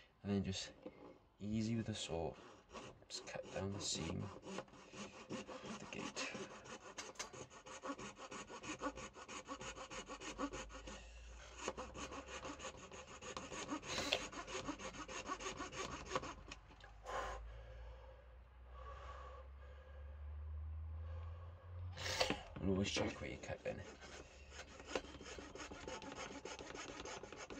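A metal file rasps quickly back and forth against hard plastic.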